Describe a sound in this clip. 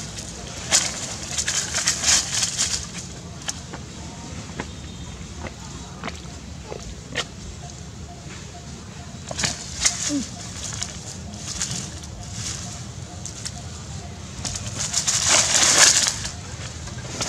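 Monkeys scramble through dry leaves, rustling and crunching them.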